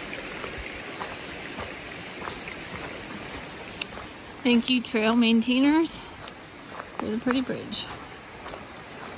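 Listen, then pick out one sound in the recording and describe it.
Footsteps crunch softly on dry leaves.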